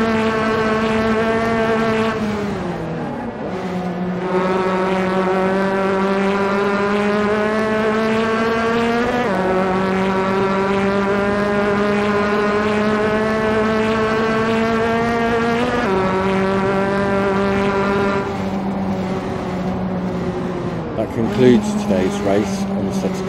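A racing car engine roars steadily, rising in pitch and dropping sharply at each gear change.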